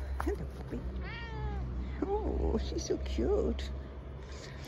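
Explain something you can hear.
A cat meows repeatedly.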